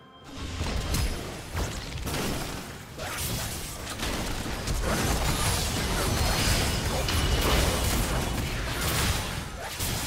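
Magic spells burst and crackle in a busy fight.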